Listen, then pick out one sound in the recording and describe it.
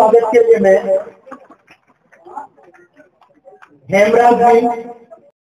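A man speaks loudly through a loudspeaker.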